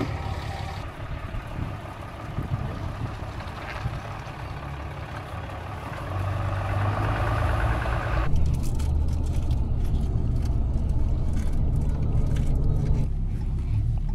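A pickup truck's engine rumbles steadily as it drives.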